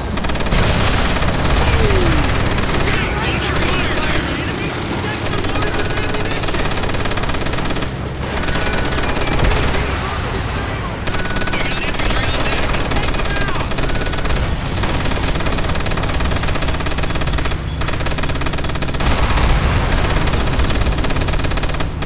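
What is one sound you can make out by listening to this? A heavy machine gun fires in long rapid bursts.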